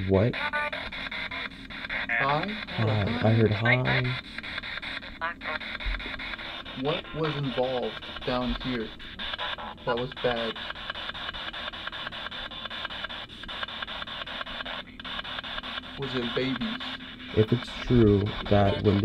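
A small handheld radio hisses and crackles with static as it rapidly sweeps through stations.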